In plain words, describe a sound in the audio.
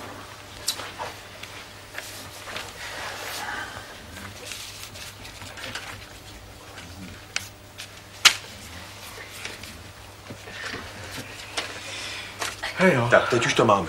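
Paper cards rustle and slide on the floor.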